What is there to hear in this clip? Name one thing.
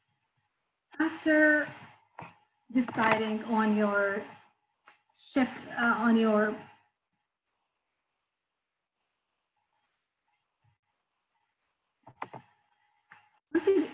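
A woman speaks calmly through an online call, pausing between phrases.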